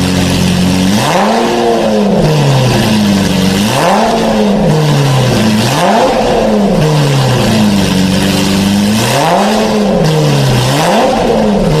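A sports car engine revs up hard and drops back again and again.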